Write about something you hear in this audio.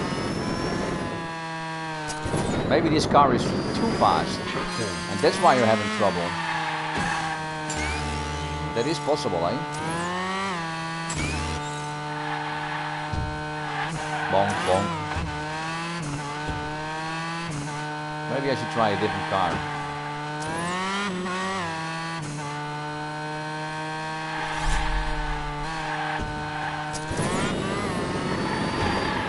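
A racing car engine whines and roars, rising and falling in pitch as it speeds up and shifts.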